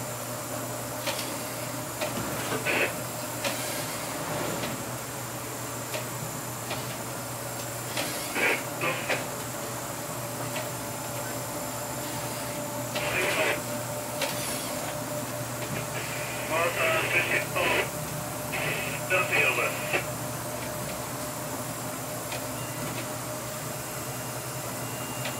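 Heavy rain and spray lash against a window.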